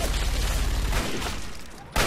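A gun fires a burst of shots.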